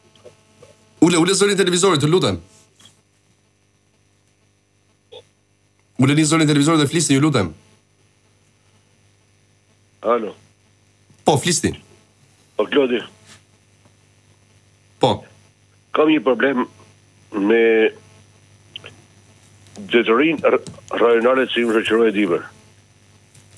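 A man speaks into a microphone close up, calmly and in short bursts.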